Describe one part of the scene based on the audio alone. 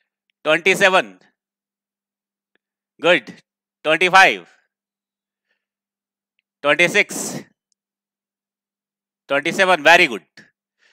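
A man speaks with animation into a headset microphone, in short bursts with pauses.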